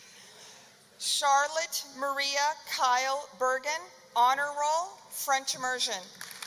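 A woman reads out names over a loudspeaker in a large echoing hall.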